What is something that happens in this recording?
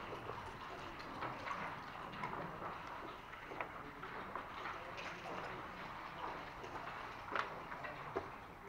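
Game pieces click and slide on a wooden board.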